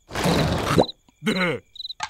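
A cartoon creature whimpers nervously.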